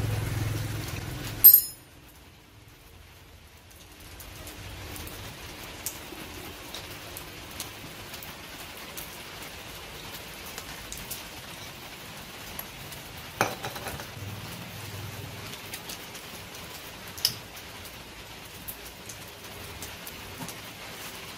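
Metal parts clink and scrape as an engine is taken apart by hand.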